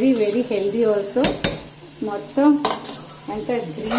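A spoon scrapes food out of a bowl into a metal pot.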